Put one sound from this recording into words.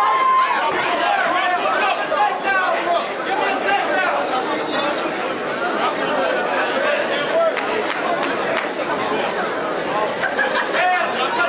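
A large crowd shouts and cheers in an echoing hall.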